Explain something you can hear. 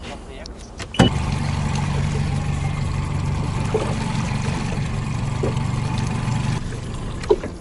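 A boat motor hums steadily close by.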